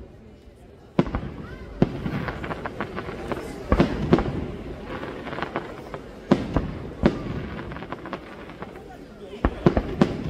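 Fireworks crackle and pop in quick bursts.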